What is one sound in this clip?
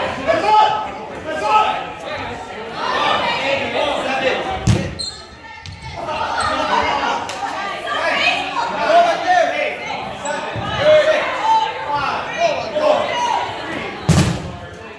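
Young men and women shout and cheer in a large echoing gym.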